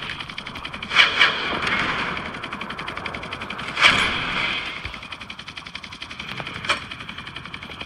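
Blasts and explosions boom now and then.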